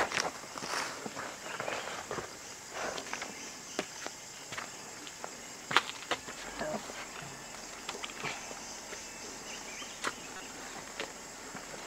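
A man climbs a wooden ladder with soft knocks and creaks.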